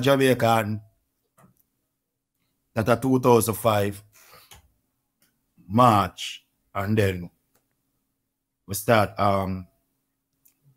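A man speaks close to a microphone in short, calm phrases with pauses between them.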